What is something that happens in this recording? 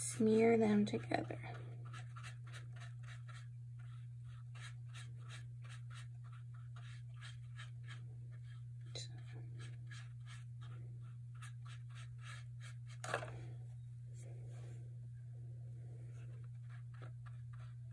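A brush softly strokes paint onto paper.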